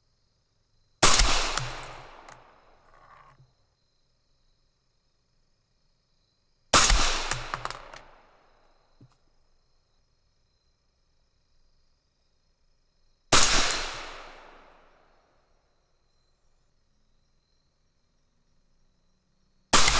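A rifle fires loud shots outdoors, each echoing away.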